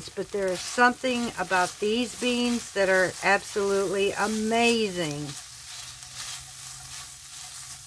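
A spoon stirs beans in a pan, scraping softly.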